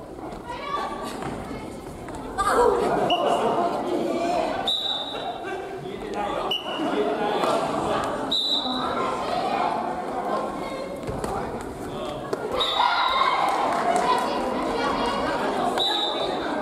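Men and women call out and talk with animation nearby.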